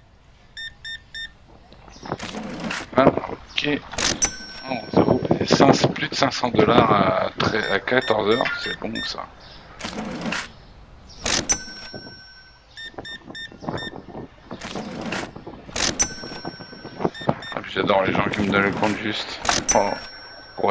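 A checkout scanner beeps in short electronic tones.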